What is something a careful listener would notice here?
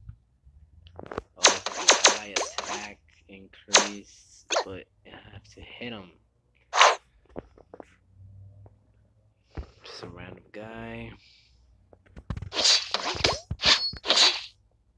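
Game attack sound effects whoosh and strike in quick bursts.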